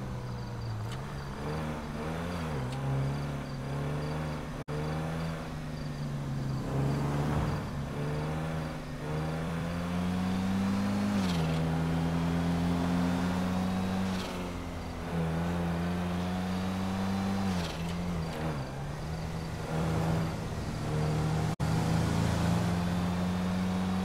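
A car engine hums steadily, rising and falling in pitch as it speeds up and shifts gears.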